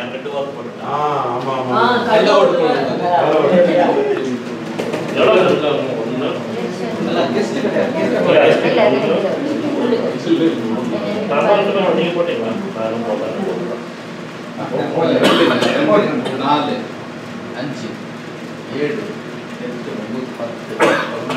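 A man speaks steadily in a room with some echo.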